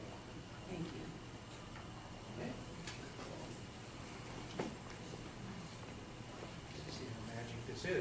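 A woman speaks quietly through a microphone.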